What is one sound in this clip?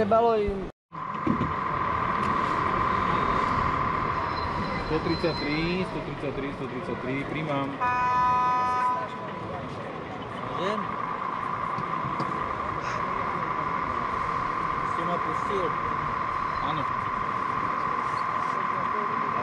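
A model train's motor hums steadily as it rolls along the track.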